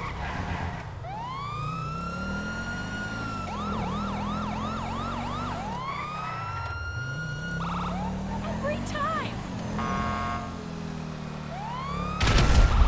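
A police siren wails and yelps.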